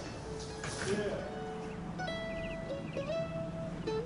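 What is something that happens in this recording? A mandolin plays.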